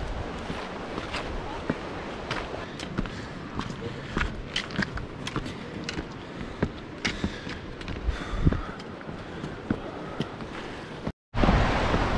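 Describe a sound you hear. Footsteps crunch on a rocky dirt trail.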